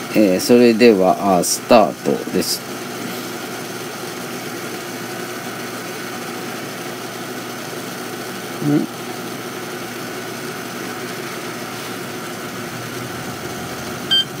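A touch button on an electronic device beeps briefly.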